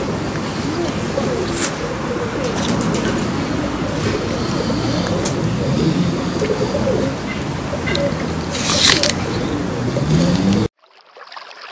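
A tortoise munches and crunches on soft fruit up close.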